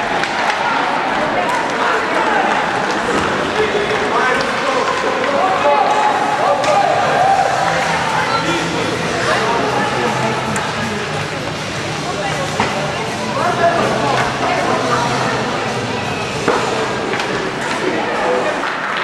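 A crowd in a large echoing arena cheers and shouts throughout.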